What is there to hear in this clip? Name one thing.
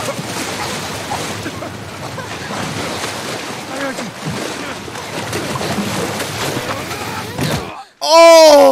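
Rushing water churns and roars.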